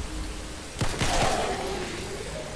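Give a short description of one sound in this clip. A gunshot rings out and echoes briefly.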